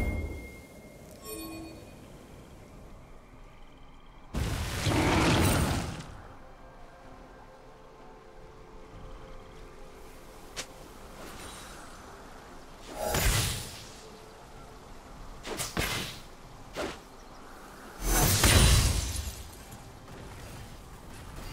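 Fiery whooshing game effects burst out now and then.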